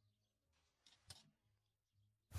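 Clothes hangers scrape along a wooden rail.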